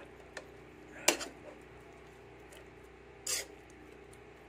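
A spoon stirs food in a pan and knocks against its side.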